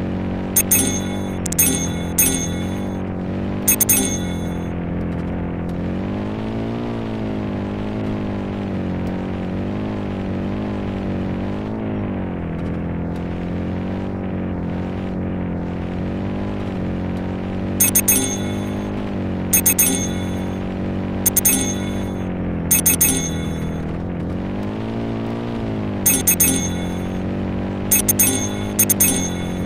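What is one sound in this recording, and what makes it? Coins chime in quick bright bursts as they are collected.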